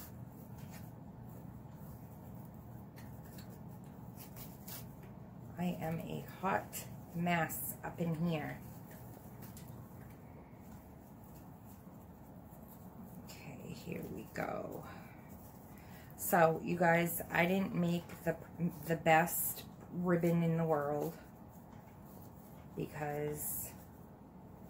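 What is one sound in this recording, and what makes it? A ribbon rustles softly as it is handled.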